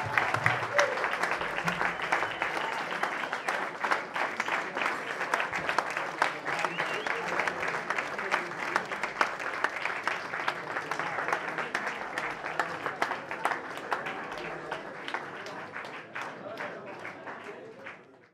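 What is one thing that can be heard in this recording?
A crowd applauds loudly in a room, slowly fading toward the end.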